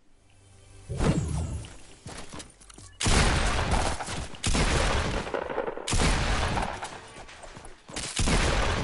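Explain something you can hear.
Rapid gunshots ring out in loud, close bursts.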